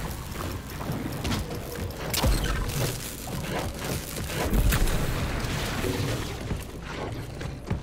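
Gunshots and energy blasts crackle loudly.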